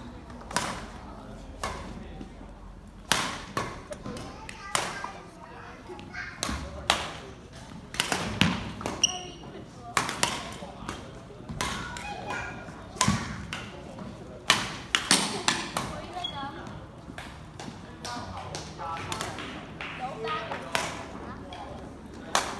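Badminton rackets strike a shuttlecock sharply in a large echoing hall.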